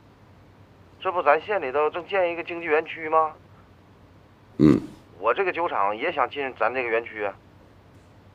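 A man's voice comes thinly through a phone.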